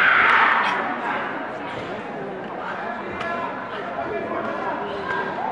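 People murmur and chatter in a large echoing hall.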